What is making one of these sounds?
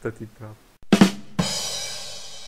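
A drum is struck twice.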